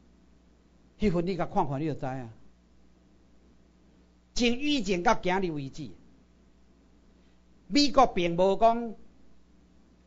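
A middle-aged man speaks into a microphone in short, lively phrases, with pauses between them.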